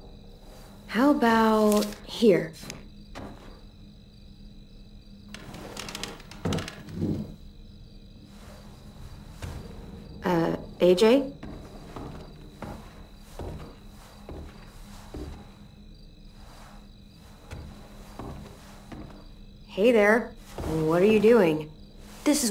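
A teenage girl speaks in a calm, curious voice.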